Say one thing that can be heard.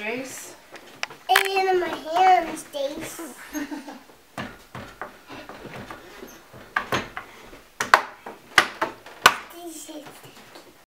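A young boy talks and squeals playfully close by.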